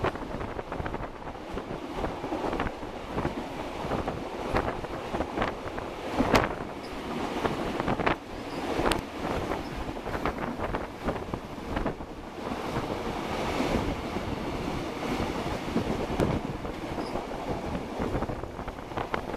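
Wheels of an electric commuter train clatter over rail joints.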